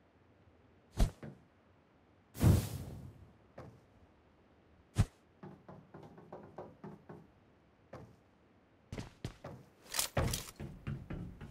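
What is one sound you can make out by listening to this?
Gunshots crack sharply now and then.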